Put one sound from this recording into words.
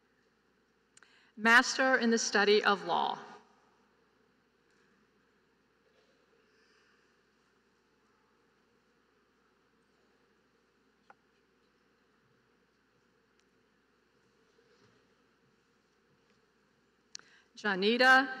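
A woman speaks calmly through a loudspeaker in a large echoing hall.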